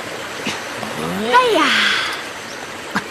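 A man shouts with effort.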